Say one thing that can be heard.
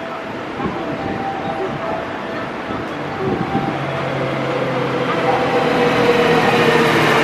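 A train approaches with a rumble of wheels on rails that grows louder.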